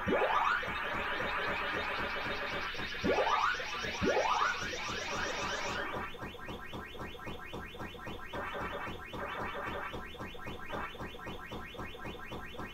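A video game plays a fast, steady electronic chomping rhythm.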